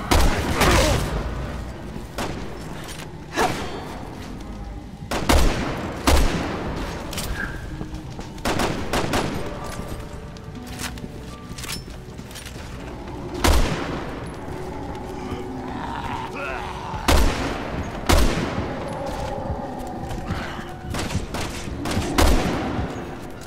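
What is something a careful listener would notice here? A rifle fires loud, sharp shots that echo away.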